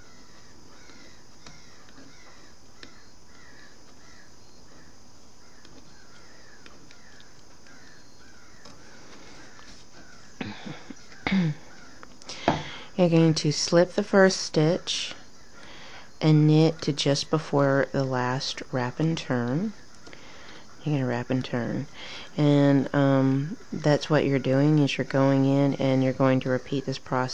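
Yarn scrapes softly over plastic pegs as it is hooked.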